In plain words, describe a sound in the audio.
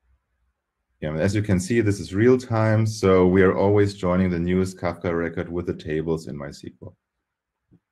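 A young man speaks calmly through a microphone, as if on an online call.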